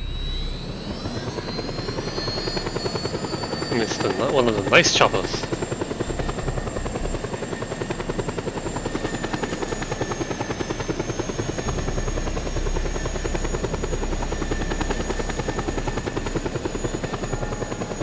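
Helicopter rotor blades chop steadily with a rapid thumping.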